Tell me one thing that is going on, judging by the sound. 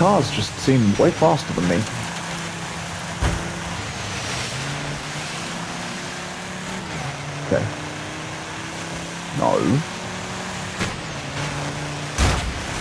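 A racing car engine hums steadily, shifting pitch as it speeds up.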